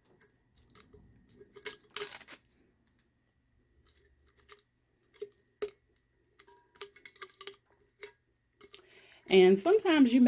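Paper packaging crinkles and rustles in a person's hands.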